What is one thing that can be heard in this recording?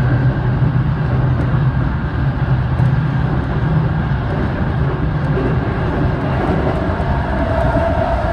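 An electric commuter train rumbles along at speed, heard from inside the carriage.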